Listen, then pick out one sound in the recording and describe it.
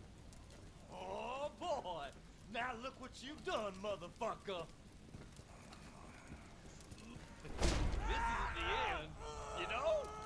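A burning man groans and screams loudly close by.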